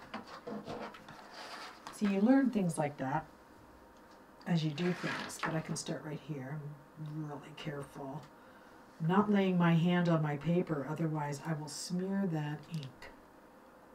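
An elderly woman speaks calmly and close by.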